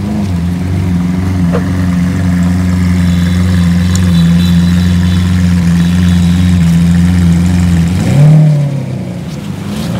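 A sports car pulls away with a loud engine roar.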